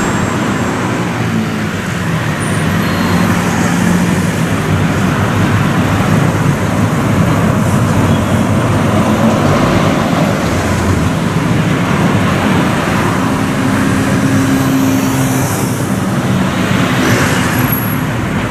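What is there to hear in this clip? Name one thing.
Road traffic hums steadily in the background.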